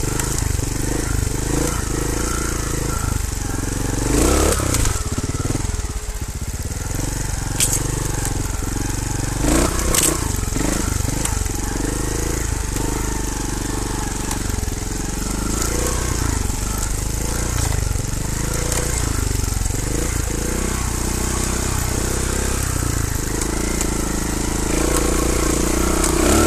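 Bicycle tyres rumble and crunch over a rocky dirt trail.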